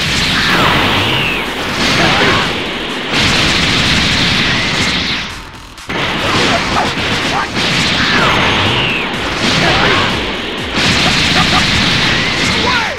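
Punches and kicks land with sharp impact thuds.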